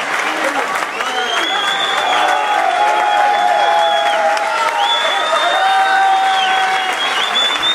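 A brass band plays loudly.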